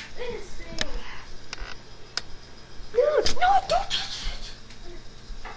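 A young boy talks and shouts excitedly close to the microphone.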